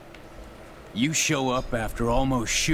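A man speaks gruffly and accusingly.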